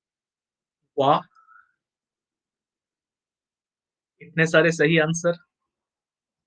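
A man speaks briefly through a microphone, in short calm bursts.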